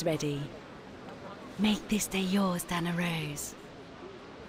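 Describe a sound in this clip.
A woman speaks calmly and up close.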